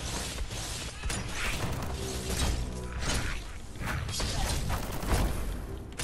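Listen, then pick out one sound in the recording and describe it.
Blows and impacts thud in a fight.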